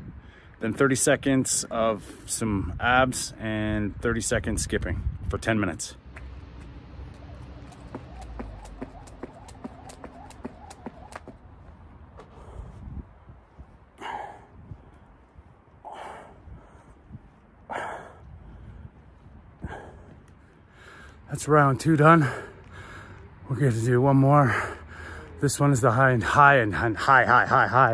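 A middle-aged man talks calmly and close by, a little out of breath.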